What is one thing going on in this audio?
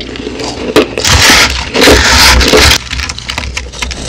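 A hand rustles and scrapes through shaved ice.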